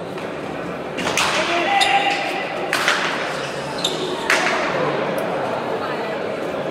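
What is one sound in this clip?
A crowd applauds and cheers in a large echoing hall.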